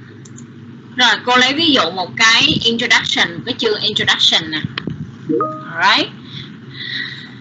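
A woman speaks through an online call, close to the microphone.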